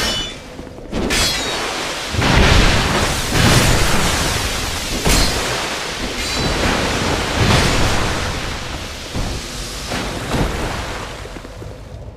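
A fire spell roars and explodes in a burst of flame.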